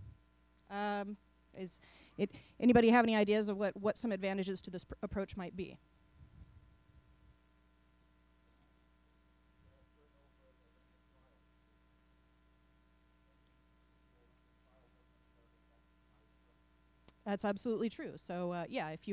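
A young woman speaks calmly into a microphone, heard through a loudspeaker in a room.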